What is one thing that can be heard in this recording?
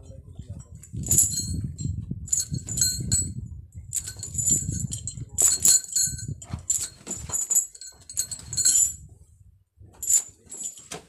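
A buffalo's hooves shuffle on dry dirt.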